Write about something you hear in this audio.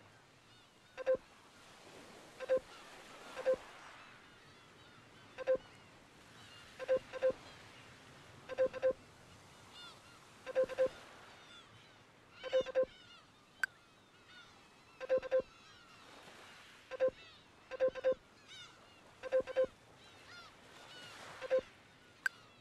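Short electronic blips sound in quick pairs.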